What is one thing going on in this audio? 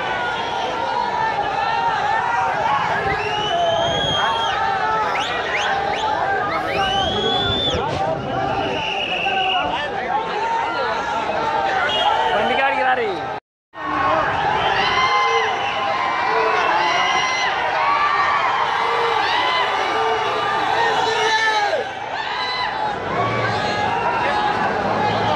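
A large crowd of men shouts and clamours loudly outdoors.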